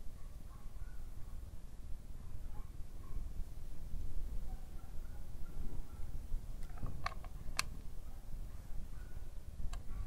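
Metal parts clink softly as a gear lever is handled.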